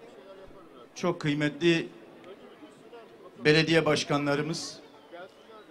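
A middle-aged man speaks loudly into a microphone over a loudspeaker.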